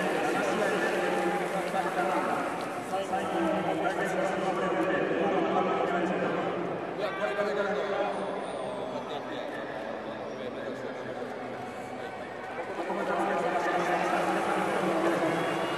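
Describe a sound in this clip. A man asks questions into a microphone.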